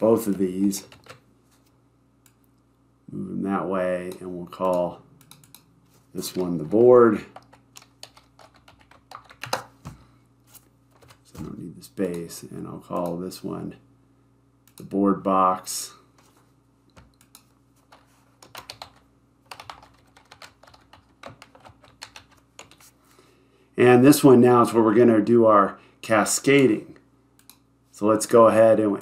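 A man talks calmly and explains into a close microphone.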